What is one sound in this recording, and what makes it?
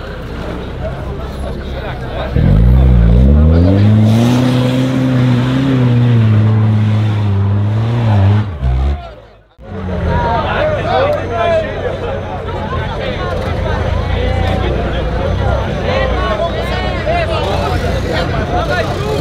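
A crowd of men and women chatter and call out nearby outdoors.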